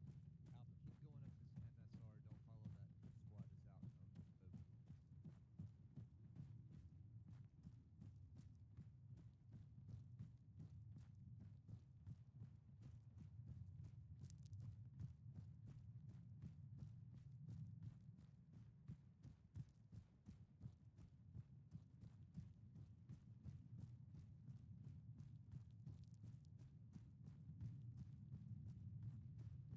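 Footsteps crunch steadily on gravel.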